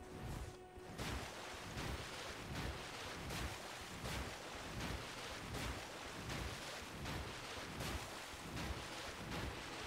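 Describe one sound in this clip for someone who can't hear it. Water splashes rhythmically as someone wades quickly through it.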